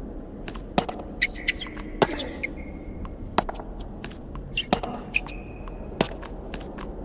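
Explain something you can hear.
A tennis racket strikes a ball with sharp pops, back and forth.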